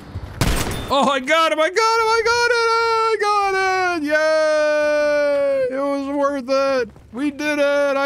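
A man sings loudly and drawn out into a close microphone.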